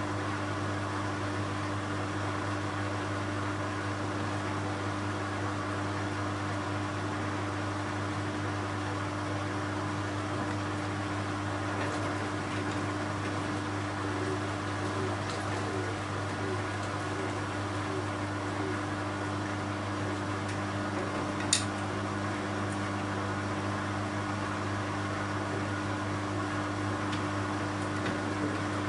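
A washing machine hums steadily as its drum turns.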